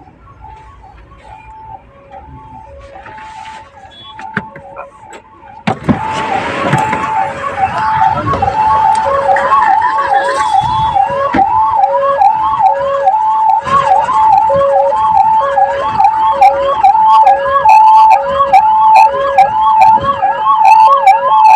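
An ambulance siren wails close by, growing louder.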